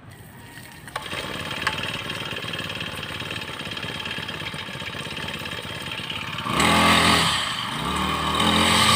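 A small petrol engine starts and runs with a steady buzzing drone.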